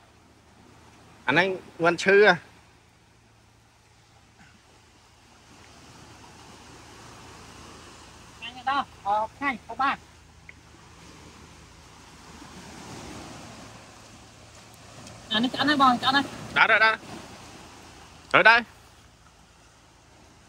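Waves wash gently on a shore.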